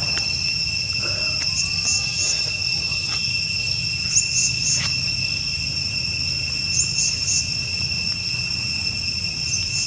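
A young monkey sucks and chews noisily on a plastic bottle, close by.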